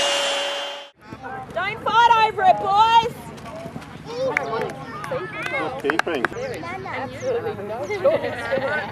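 Children shout and call out while playing outdoors.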